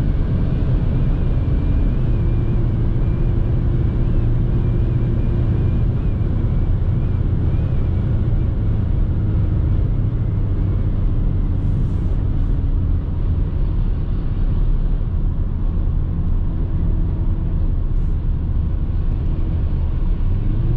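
A car's engine hums steadily inside the cabin.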